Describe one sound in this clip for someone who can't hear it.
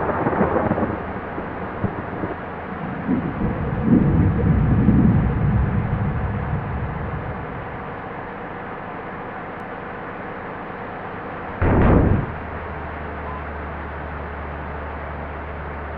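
Rain patters steadily on a windscreen.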